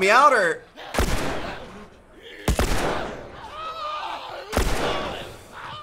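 Gunshots bang loudly in an echoing space.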